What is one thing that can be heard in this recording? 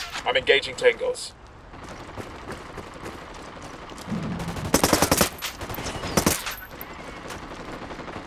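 Boots crunch on gravel.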